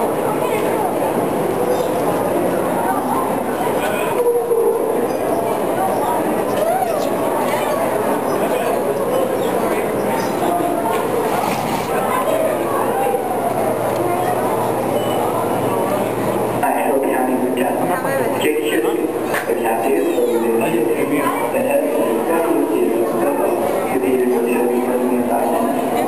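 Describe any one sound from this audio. Children and adults chatter.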